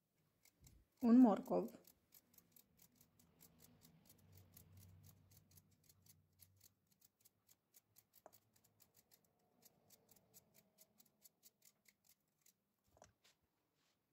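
A knife slices through carrots with quick, regular clicks.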